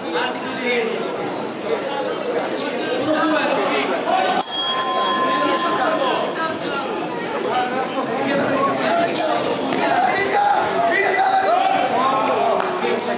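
A crowd of people talks and calls out in a large echoing hall.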